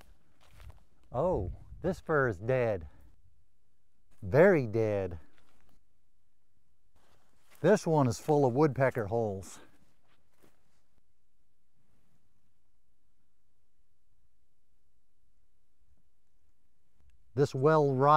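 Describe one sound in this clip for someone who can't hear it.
A man speaks calmly and close by, in bursts with pauses.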